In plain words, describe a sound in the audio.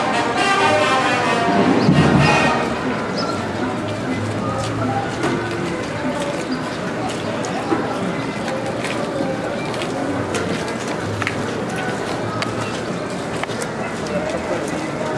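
A crowd of men and women chatters outdoors nearby.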